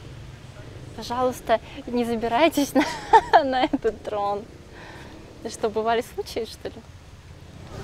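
A young woman speaks close to the microphone, calmly and cheerfully.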